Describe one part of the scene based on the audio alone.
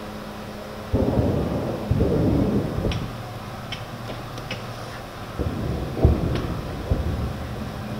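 Distant explosions boom and rumble.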